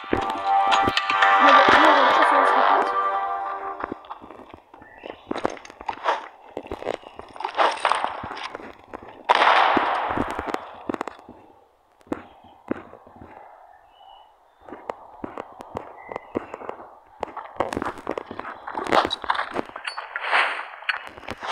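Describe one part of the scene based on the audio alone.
Footsteps thud on hard ground at a quick pace.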